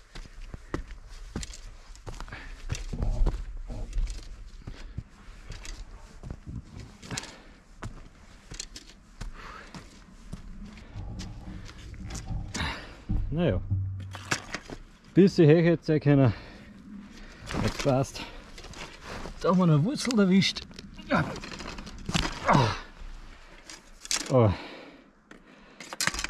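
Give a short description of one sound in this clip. Footsteps crunch on dry twigs and needles.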